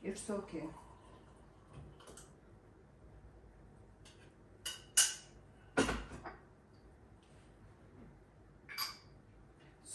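Dishes clink and clatter on a counter.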